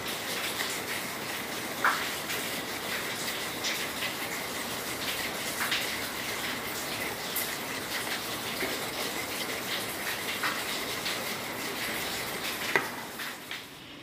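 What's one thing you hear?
A wire whisk beats rice batter in a metal bowl, clinking against the sides.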